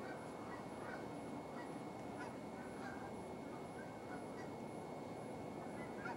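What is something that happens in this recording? Birds call with short, faint chirps in the distance.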